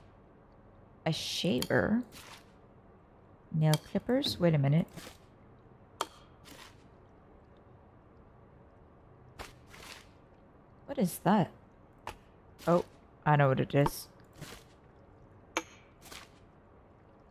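Small objects are set down with light clinks and knocks.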